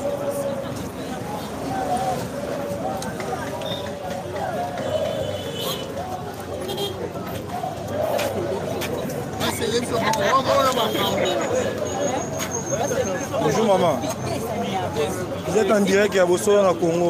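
A crowd of marchers chatters and calls out outdoors.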